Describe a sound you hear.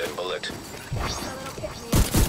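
Gunshots crack in a quick burst.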